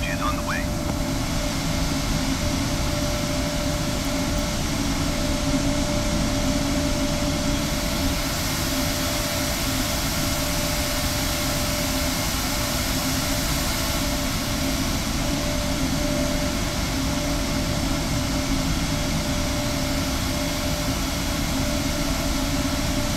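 Jet airliner engines hum with a steady whine.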